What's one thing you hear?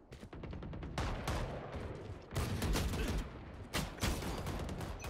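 Rifle shots ring out in sharp, quick bursts.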